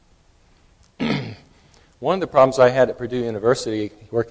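An older man speaks clearly through a microphone, lecturing with animation.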